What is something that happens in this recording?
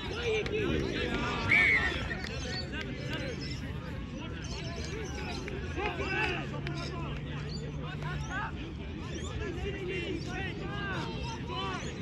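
Young players shout and call to each other across an open field in the distance.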